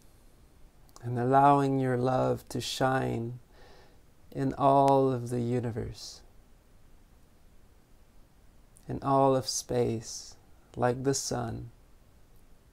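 A man speaks slowly and calmly, close to the microphone, with long pauses.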